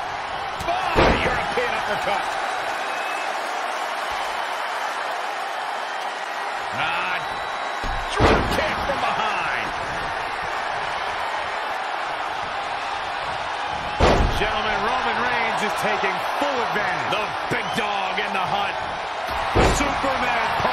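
Heavy thuds of bodies slamming onto a wrestling mat ring out.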